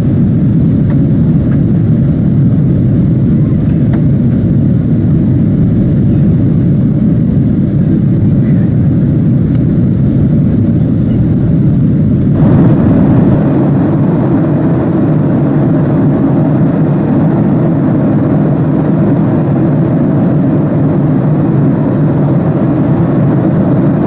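Jet engines roar steadily in the cabin of a plane in flight.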